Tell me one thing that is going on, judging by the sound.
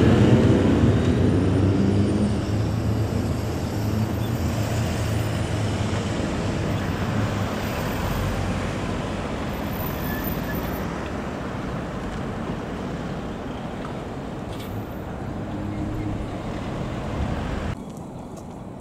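A car drives past on the road.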